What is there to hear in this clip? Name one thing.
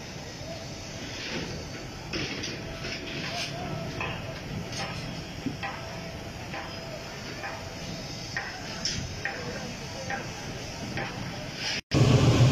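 Metal scaffolding clanks and taps nearby.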